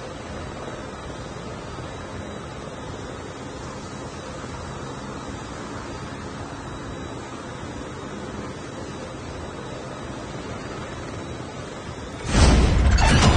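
An aircraft drones in flight.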